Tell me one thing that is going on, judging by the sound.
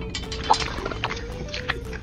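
Wet cement pours into a small metal bucket.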